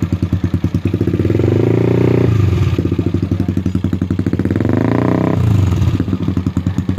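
A bored-out single-cylinder scooter engine revs up twice and drops back.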